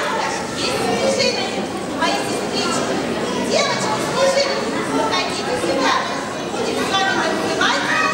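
A man speaks loudly and with animation through a microphone in an echoing hall.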